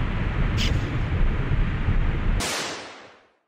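Fireballs whoosh past in a video game.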